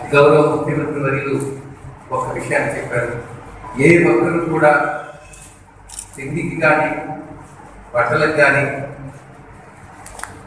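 An elderly man speaks with animation into a microphone over a loudspeaker.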